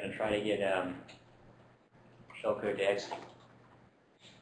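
A man lectures calmly through a microphone.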